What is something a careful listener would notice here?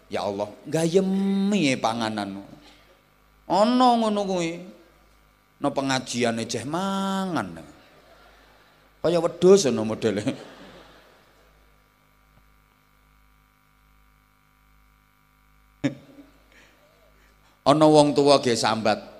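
A man speaks with animation through a microphone and loudspeakers, with pauses.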